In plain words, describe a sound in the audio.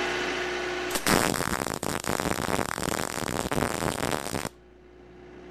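A welding torch crackles and sizzles steadily.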